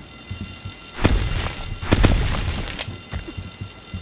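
A metal bar strikes with a heavy thud.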